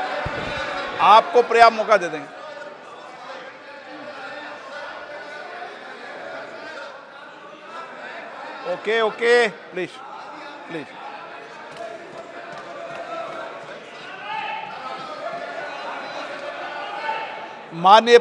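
Men in a crowd shout out loudly in bursts.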